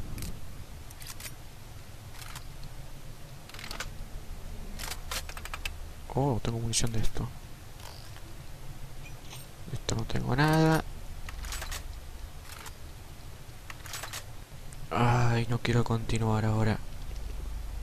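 Metal weapons click and clack as they are switched.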